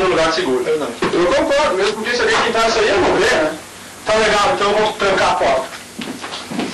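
A man speaks loudly and with animation in a room.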